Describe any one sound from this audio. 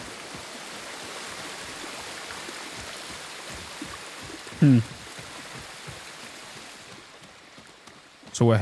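Footsteps thud quickly up stone and wooden steps.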